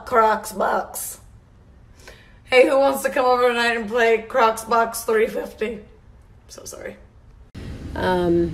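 A young woman talks animatedly close to the microphone.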